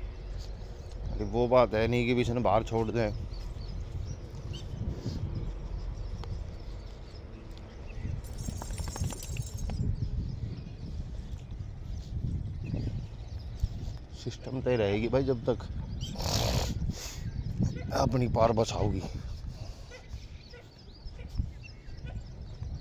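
A dog's paws patter on a dirt path.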